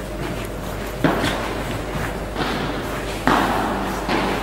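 A tennis ball is struck with a racket, with sharp pops echoing in a large hall.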